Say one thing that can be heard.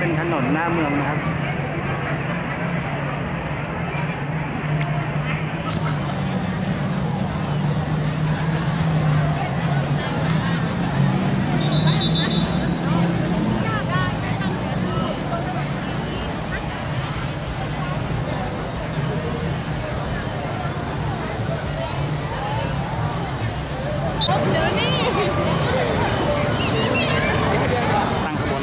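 A crowd of men and women chatters outdoors in a busy street.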